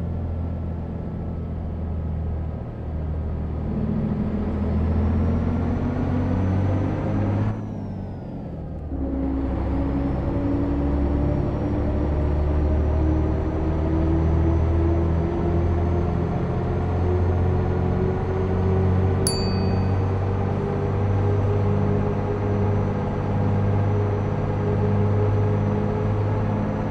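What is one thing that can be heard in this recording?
A bus engine hums steadily and rises in pitch as it speeds up, with a brief drop during a gear change.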